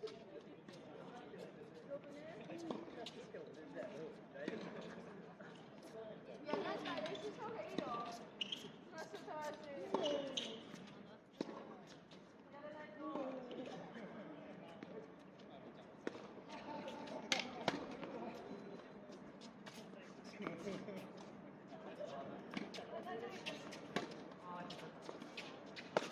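Tennis balls pop off rackets outdoors.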